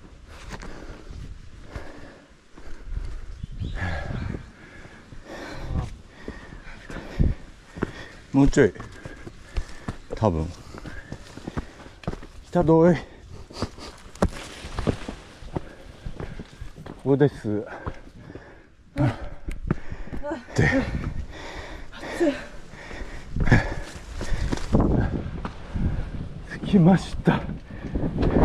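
Footsteps crunch on a dirt and rocky trail.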